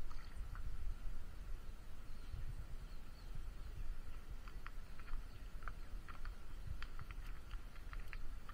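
A goat's hooves tap and clatter on hard plastic.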